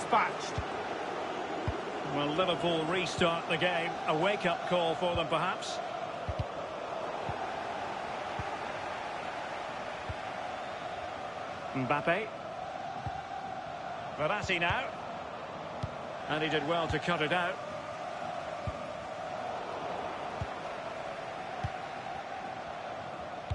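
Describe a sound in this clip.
A stadium crowd murmurs and roars steadily throughout.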